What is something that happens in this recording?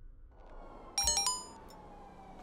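A short electronic notification chime rings.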